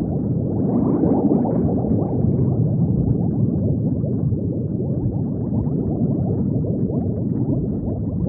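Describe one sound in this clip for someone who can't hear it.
Bubbles gurgle and burble steadily underwater.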